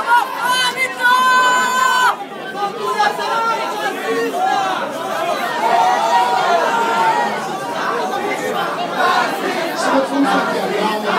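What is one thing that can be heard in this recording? A crowd of men and women shout and argue loudly.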